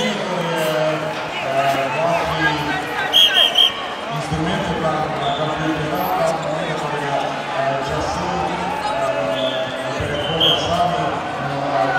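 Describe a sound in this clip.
A large indoor crowd chatters and murmurs, echoing.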